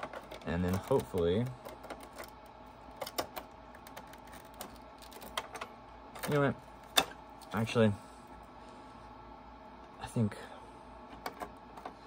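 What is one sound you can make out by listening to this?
Plastic parts click and knock under handling.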